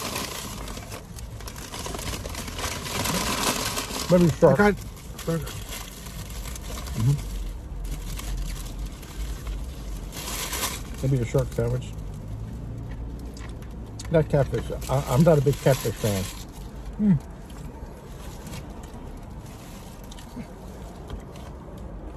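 Paper wrappers rustle.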